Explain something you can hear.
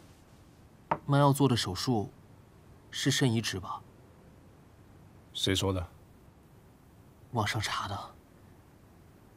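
A young man asks questions with concern, close by.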